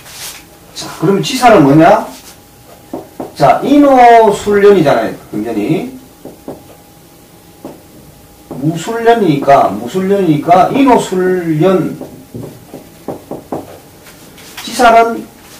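A middle-aged man speaks calmly, close by.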